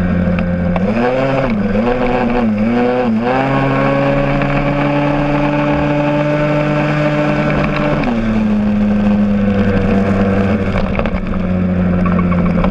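A motorcycle engine hums close by, revving up and down before settling to a steady drone.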